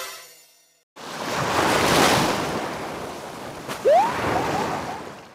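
Waves wash onto a shore with a soft rush.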